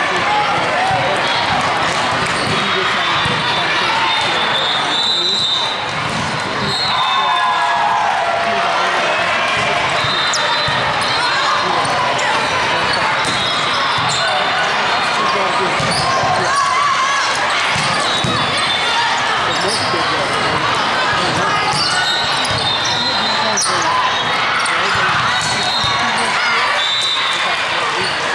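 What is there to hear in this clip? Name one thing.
Players' shoes squeak sharply on the court floor.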